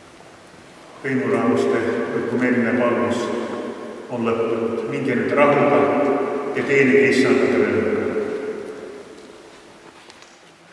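An elderly man chants in a loud, echoing hall.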